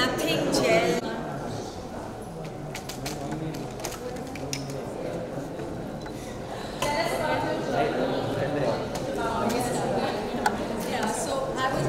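A young woman speaks cheerfully into a microphone.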